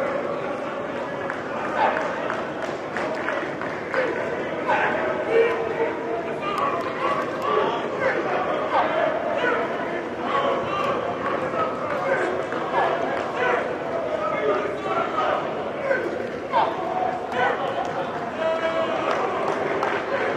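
Many young men chatter and call out across a large echoing indoor hall.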